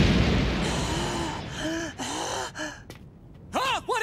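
A man laughs wildly.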